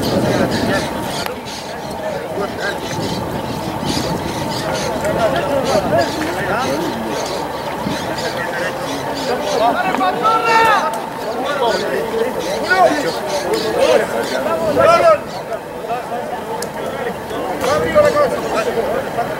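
Young women shout and call to each other outdoors across an open field.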